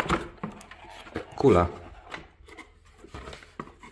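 Cardboard rustles as a box is opened.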